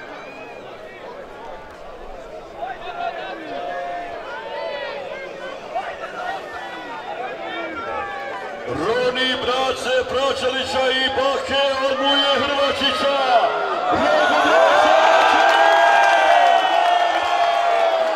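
A crowd of men and women shouts and cheers outdoors, growing louder.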